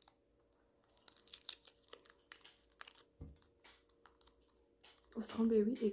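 A plastic candy wrapper crinkles as it is torn open.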